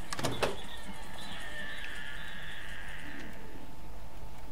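A microwave oven hums while running.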